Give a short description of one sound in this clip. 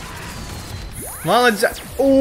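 A rushing whoosh sweeps past.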